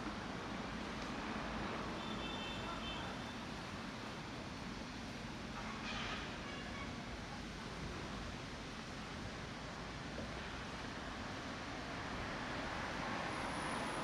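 City traffic hums steadily in the distance outdoors.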